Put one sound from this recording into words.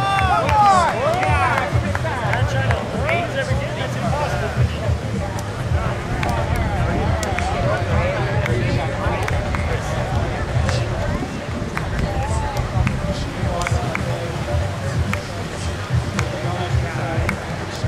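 Young men shout and call out to each other across a beach.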